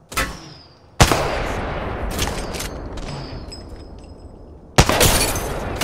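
A rifle fires loud single shots that ring out and echo.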